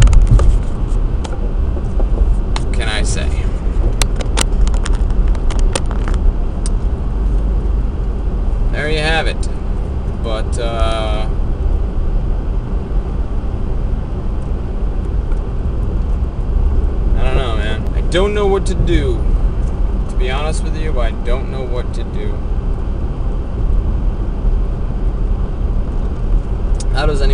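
A car engine rumbles steadily inside a moving car.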